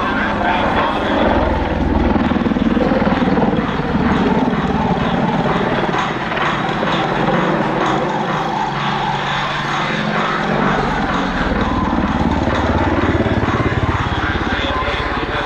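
A helicopter engine roars steadily overhead.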